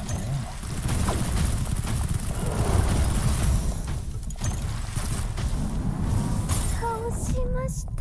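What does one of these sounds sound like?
Energy blasts crackle and boom with a deep rumble.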